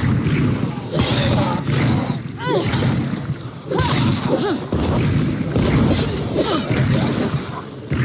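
Blows thump against bodies in a brawl.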